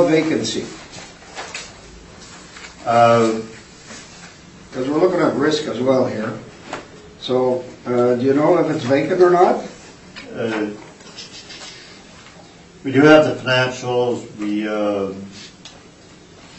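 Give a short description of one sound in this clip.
An adult speaks calmly through a microphone, with pauses.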